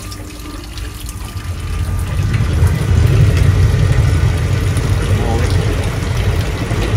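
Water gushes and churns inside a pump basin, growing louder.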